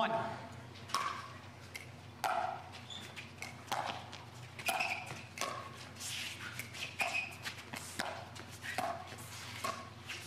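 Paddles pop sharply against a plastic ball, back and forth.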